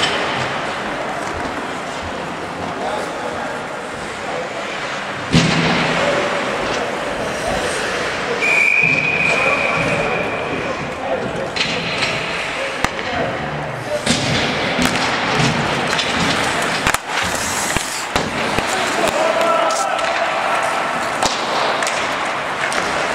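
Skates scrape across ice in a large echoing arena.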